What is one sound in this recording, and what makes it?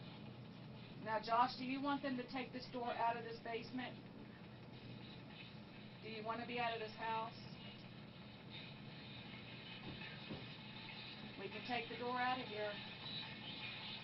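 A young woman talks nearby in short bursts.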